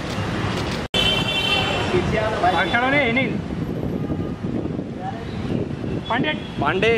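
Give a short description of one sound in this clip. Men call out loudly outdoors in a busy street.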